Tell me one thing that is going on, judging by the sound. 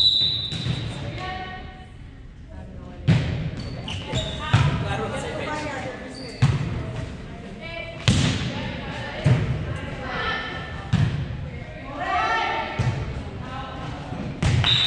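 Women players call out to one another across the gym.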